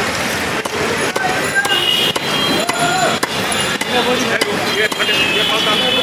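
A wooden stick thumps down on a fish.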